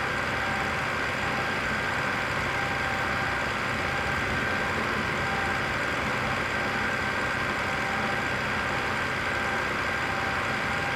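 A truck engine hums steadily at highway speed.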